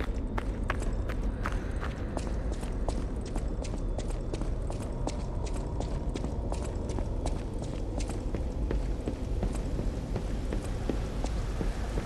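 Footsteps tread quickly and steadily on a hard floor.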